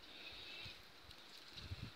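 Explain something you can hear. Leaves and stems rustle softly as a hand picks flowers close by.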